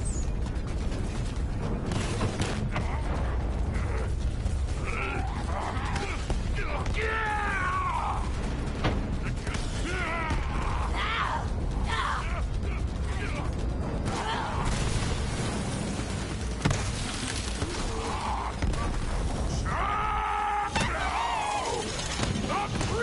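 Guns fire rapidly in a game.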